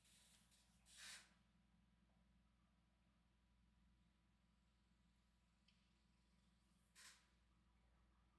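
Small plastic parts rustle and click between fingers.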